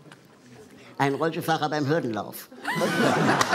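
A young man speaks on a microphone.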